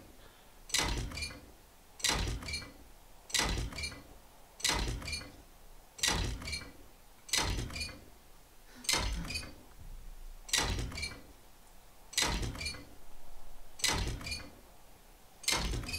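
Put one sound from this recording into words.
A wrench clangs against metal in a steady, repeated rhythm.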